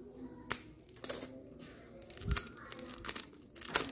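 A plastic wrapper crinkles and rustles between fingers.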